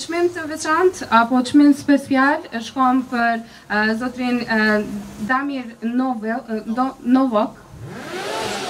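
A young woman speaks calmly into a microphone, heard through loudspeakers in a large echoing hall.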